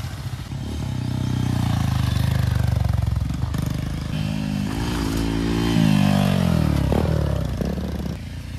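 A motorcycle engine revs up sharply close by.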